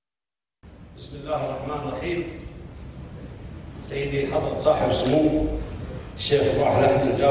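An older man speaks through a microphone in a calm voice.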